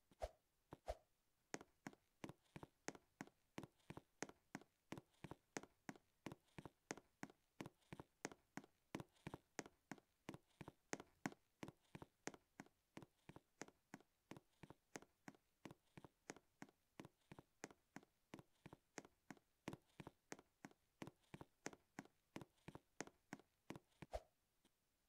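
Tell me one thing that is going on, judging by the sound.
Quick, light footsteps patter steadily as a game character runs.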